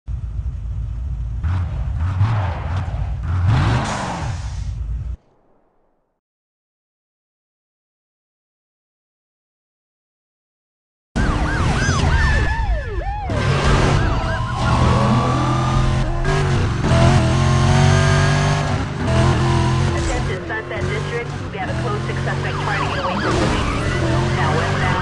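A sports car engine roars and revs at high speed.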